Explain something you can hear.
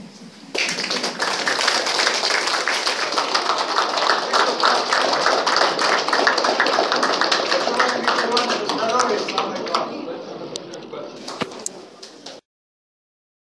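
A crowd applauds loudly in an echoing room.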